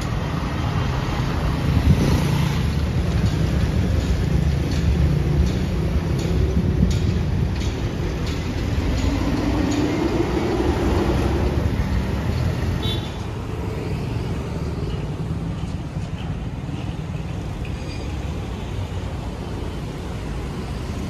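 A vehicle's engine hums steadily with tyres rolling on the road.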